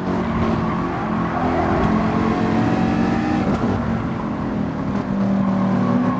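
Tyres screech around a corner.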